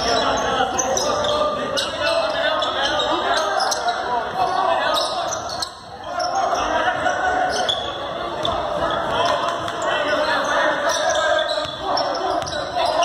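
A small crowd of spectators talks and calls out in a large echoing gym.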